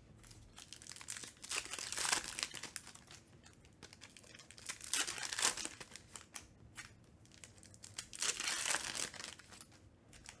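Foil card wrappers crinkle and tear as they are ripped open.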